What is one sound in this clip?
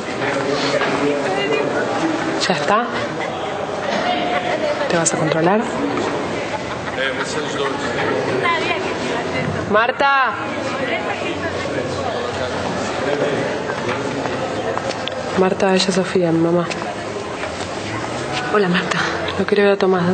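A young woman speaks in a tearful, shaky voice.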